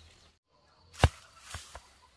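A ripe fruit drops onto the grass with a soft thud.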